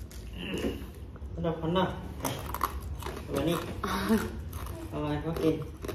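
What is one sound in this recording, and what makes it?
A young woman crunches ice between her teeth.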